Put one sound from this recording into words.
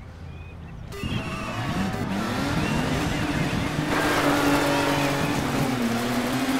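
Racing truck engines roar and rev up as a race starts.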